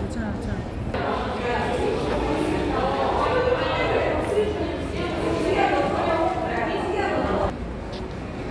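Women and men talk over one another in an echoing stairwell.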